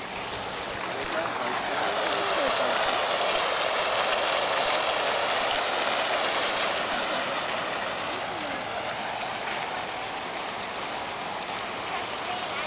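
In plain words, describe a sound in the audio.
A fountain splashes and bubbles nearby.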